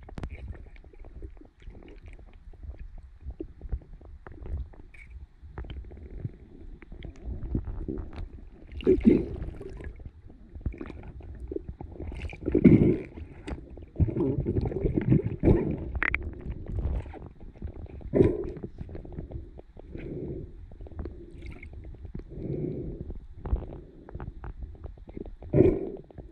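Water rushes and swirls in low, uneven surges underwater.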